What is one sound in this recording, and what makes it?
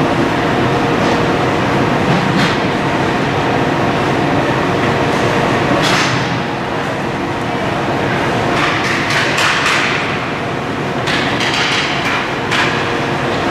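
Hockey sticks tap and clack together.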